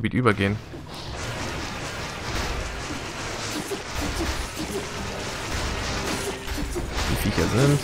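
Blows and impacts clatter in a fast fight.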